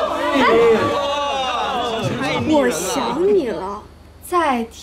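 A man cries out loudly and emotionally nearby.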